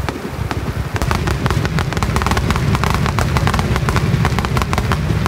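Fireworks crackle and pop sharply in rapid bursts.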